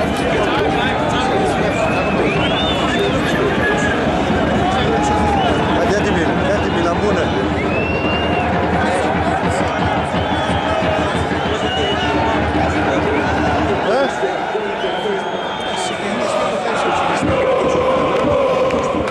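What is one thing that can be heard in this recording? Fans whistle shrilly from the stands.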